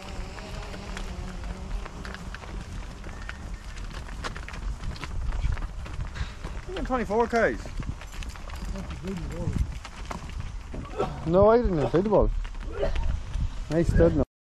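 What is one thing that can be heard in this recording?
Hooves clop on a paved road.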